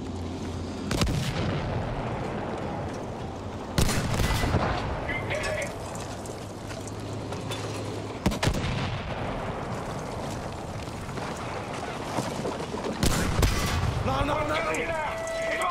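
Loud explosions boom and rumble close by.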